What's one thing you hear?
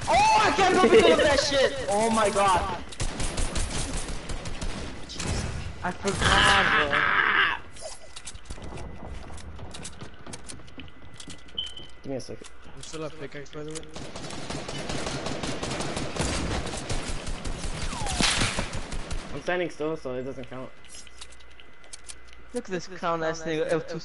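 Rapid gunshots crack in short bursts.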